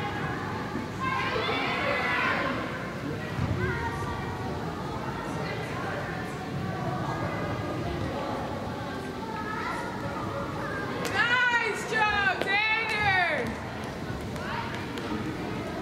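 Young women call out to each other across a large echoing hall.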